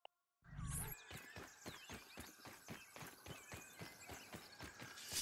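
Footsteps crunch on sand at a steady walking pace.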